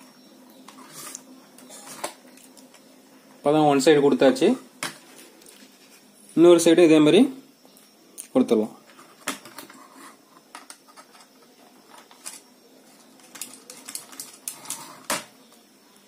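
A screwdriver scrapes and turns screws.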